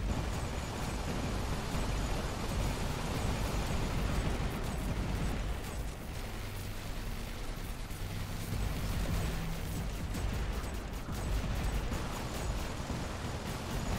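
Heavy metal footsteps of a giant robot thud steadily.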